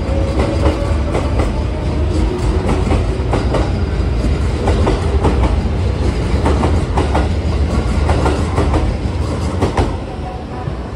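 A train rumbles and rattles loudly along the tracks.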